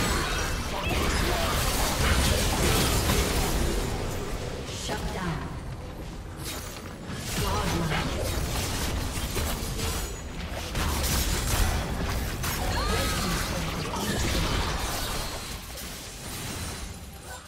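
Magic blasts and sword hits crash and whoosh in quick bursts.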